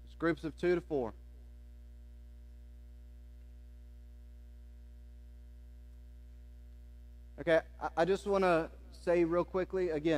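A man speaks through a microphone in a large room, pausing for a long while.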